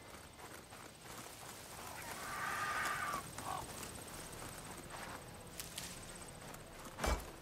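Footsteps crunch through grass and dirt.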